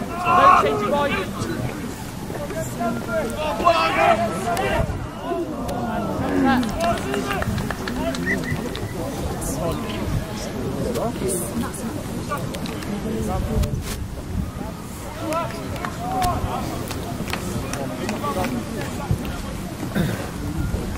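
Young players shout and call out to each other across an open outdoor field.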